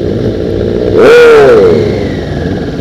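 A motorcycle engine revs up loudly and falls back.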